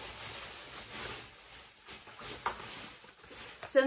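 Paper crinkles in a woman's hands.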